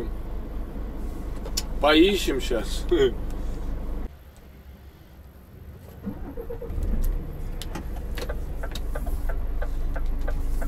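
A truck engine hums low and steady inside the cab.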